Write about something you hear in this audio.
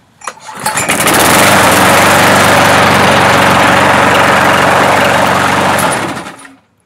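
A lawnmower engine starts with a pull cord and runs loudly and steadily, then cuts out.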